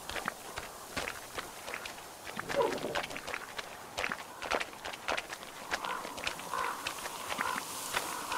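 Footsteps crunch quickly through snow and slush.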